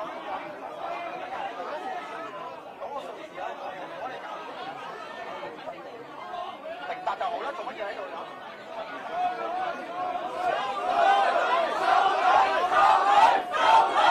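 A crowd of men and women talk and argue loudly all around, in an echoing hall.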